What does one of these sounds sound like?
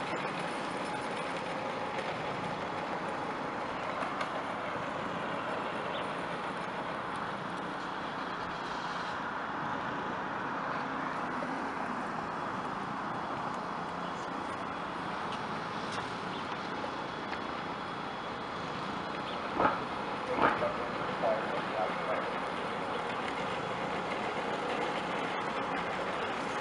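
Steady outdoor traffic noise hums in the open air.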